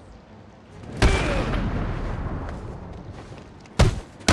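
A cape whooshes through the air.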